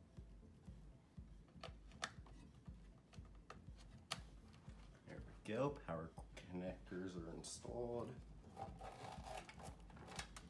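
Cables click and rustle up close.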